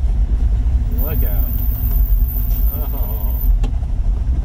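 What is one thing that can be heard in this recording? An elderly man speaks briefly nearby.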